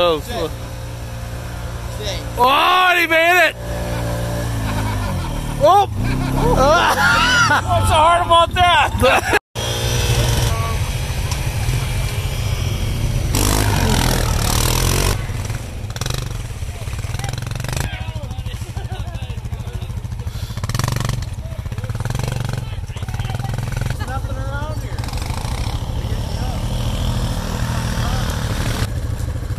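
An all-terrain vehicle engine idles and revs steadily nearby.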